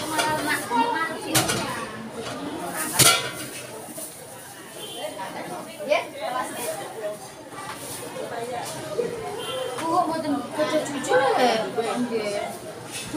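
A woman talks casually nearby.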